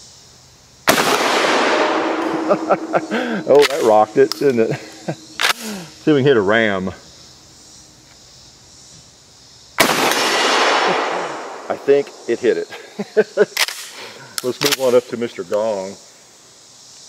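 Steel targets ring and clang after being hit.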